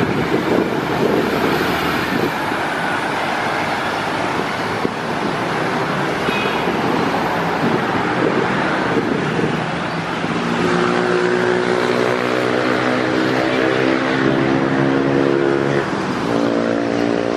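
Street traffic rumbles outdoors.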